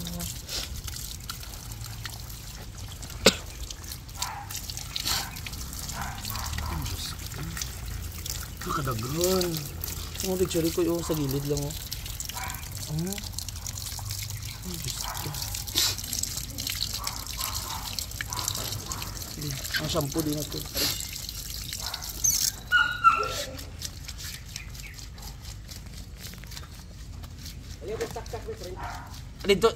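Water splashes steadily from a hose.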